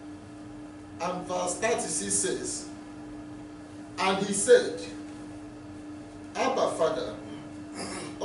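A man speaks slowly and calmly into a microphone, with pauses.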